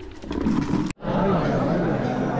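A crowd of young men chatters indoors.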